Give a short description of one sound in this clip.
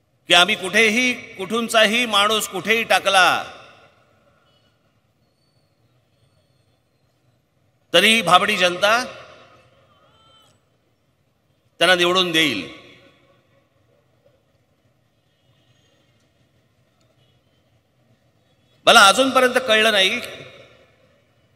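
A middle-aged man speaks forcefully into a microphone through loudspeakers, in short bursts with long pauses.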